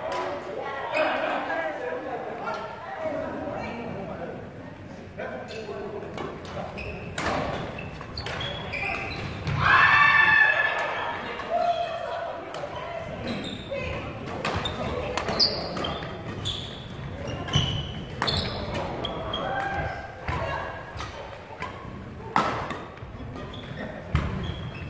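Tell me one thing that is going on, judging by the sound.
Men and women talk and call out in a large echoing hall.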